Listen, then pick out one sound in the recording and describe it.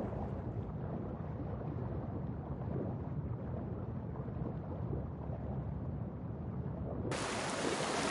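Water swirls and gurgles, heard muffled from underwater.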